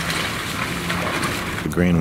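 A man wades through shallow water, splashing.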